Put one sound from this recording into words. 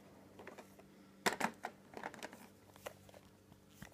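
A plastic coin tube clicks and rattles in a hand.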